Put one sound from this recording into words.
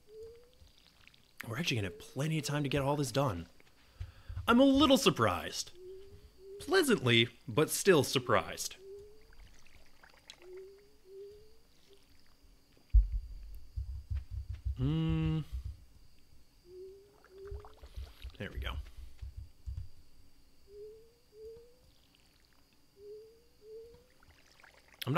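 Water splashes from a watering can in short, repeated bursts.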